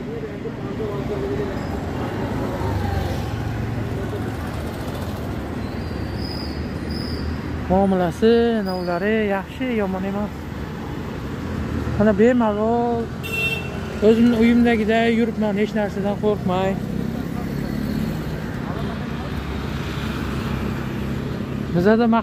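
Road traffic rumbles steadily nearby outdoors.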